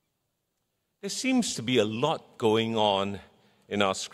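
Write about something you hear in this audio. A middle-aged man speaks calmly into a microphone.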